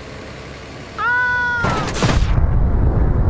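A truck engine roars as it drives up a ramp.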